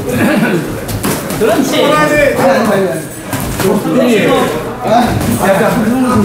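Boxing gloves thud against pads and headgear.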